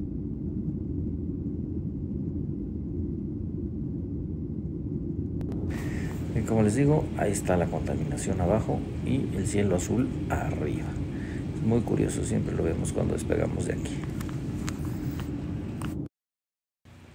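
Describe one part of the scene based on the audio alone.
A jet engine roars steadily inside an aircraft cabin.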